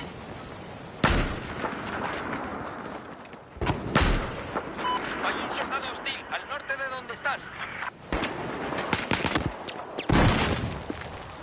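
Loud rifle shots crack and echo.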